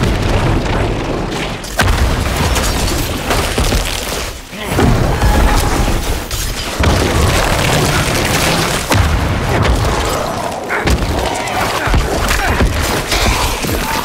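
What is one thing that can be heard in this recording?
Magic spells burst and crackle in a video game battle.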